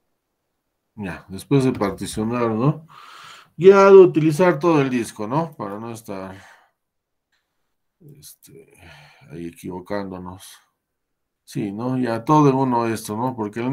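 A man speaks calmly through a microphone, as in an online call.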